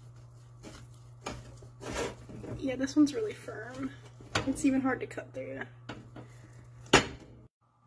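A knife cuts through crusty bread.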